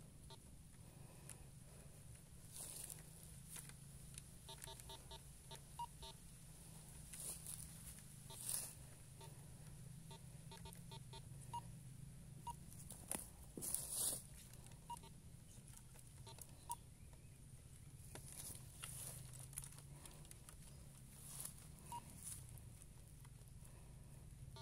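A metal detector's coil swishes through grass and leaves.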